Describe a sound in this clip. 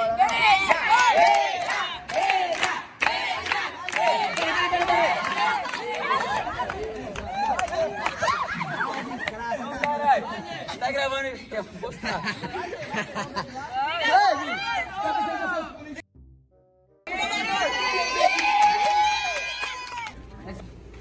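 A group of young people laugh and shout excitedly close by.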